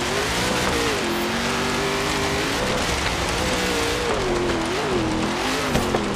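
A truck engine roars and revs up and down.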